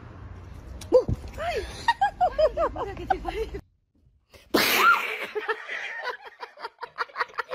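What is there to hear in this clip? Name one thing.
A woman screams in fright close by.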